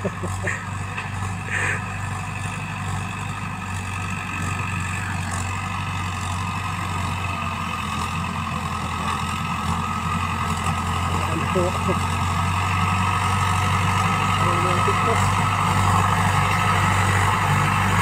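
A tractor engine rumbles steadily, growing louder as it approaches.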